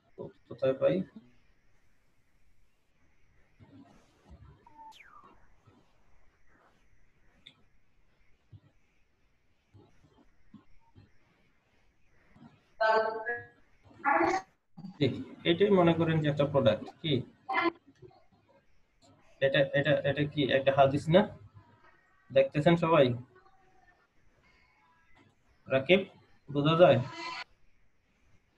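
A man talks with animation over an online call, in short bursts.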